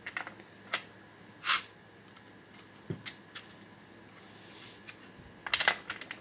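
Small metal pellets rattle and clink in a plastic tray.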